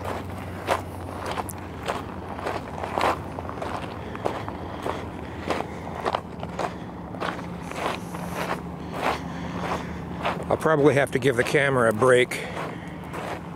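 Footsteps crunch steadily on loose gravel close by.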